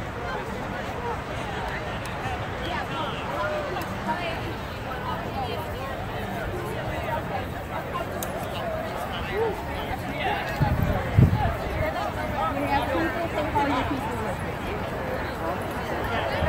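A large outdoor crowd of men and women chatters with many overlapping voices.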